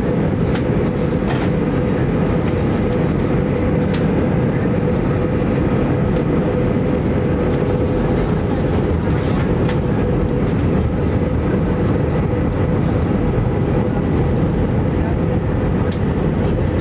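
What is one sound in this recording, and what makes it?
The turbofan engines of an Airbus A321 airliner drone steadily, heard from inside the cabin on descent.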